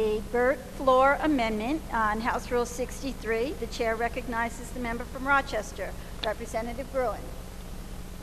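A middle-aged woman speaks calmly into a microphone in a large room.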